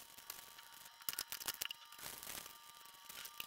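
Plastic wrappers crinkle and rustle as hands press them into a bottle.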